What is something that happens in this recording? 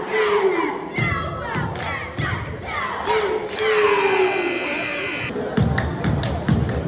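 Cheerleaders clap and stomp in a rhythm.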